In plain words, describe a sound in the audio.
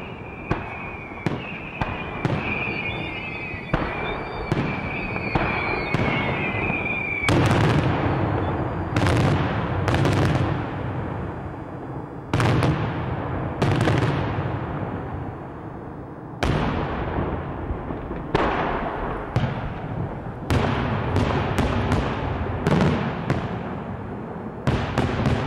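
Fireworks shells burst overhead with sharp, booming bangs, one after another.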